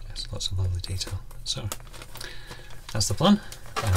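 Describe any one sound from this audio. A plastic bag is set down on a tabletop.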